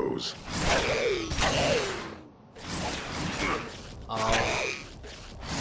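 Creatures shriek with falling cries.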